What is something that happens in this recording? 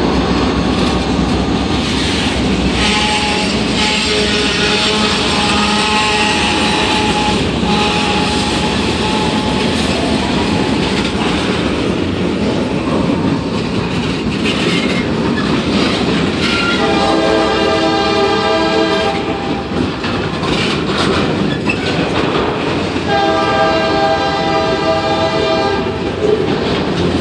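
A freight train rumbles past close by, its wheels clattering over the rails.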